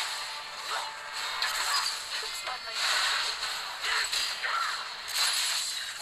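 Game spell effects whoosh and clash in a fight.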